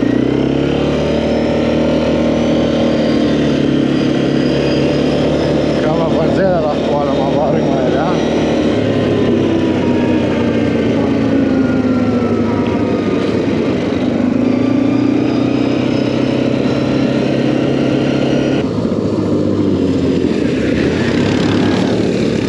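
A quad bike engine runs close by, revving up and down.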